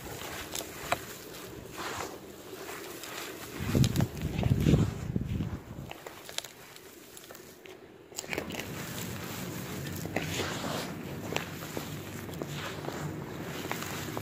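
Gloved hands scoop and rustle through dry soil.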